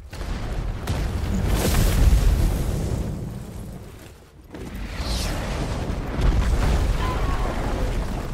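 Rocks crash and tumble as debris falls.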